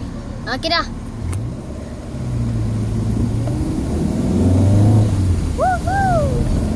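A car engine rumbles from inside the car, rising and falling as it revs.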